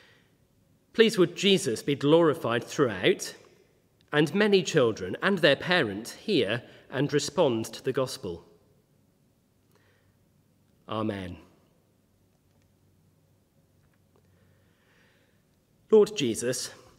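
A man reads aloud calmly into a microphone, with pauses.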